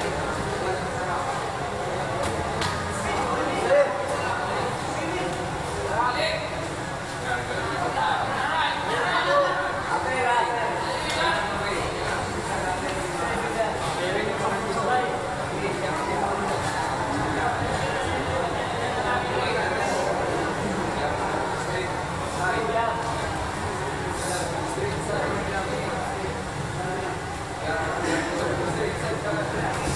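A crowd of spectators chatters and shouts throughout.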